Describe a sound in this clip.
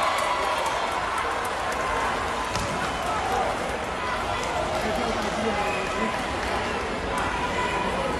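A crowd murmurs and cheers throughout a large echoing hall.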